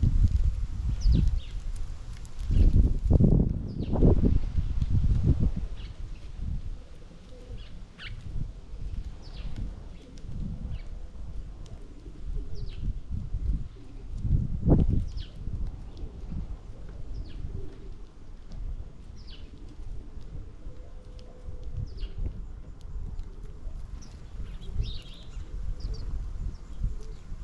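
Small birds chirp with short, high notes.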